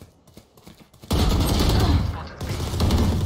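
Rifle shots fire in quick bursts.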